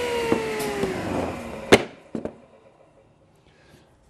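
A piece of wood knocks against a table.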